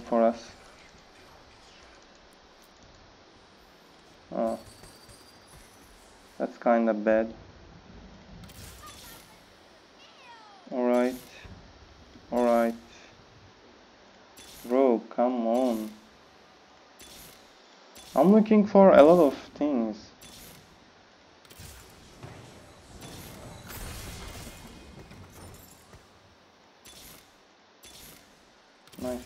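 Game characters clash with sharp magical blasts and hits.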